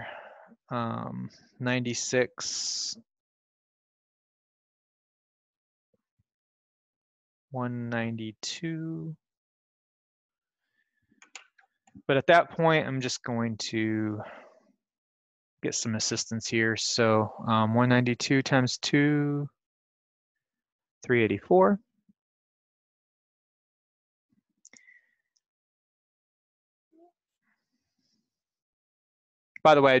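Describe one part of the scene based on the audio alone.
A man talks calmly into a microphone, explaining in short bursts with pauses.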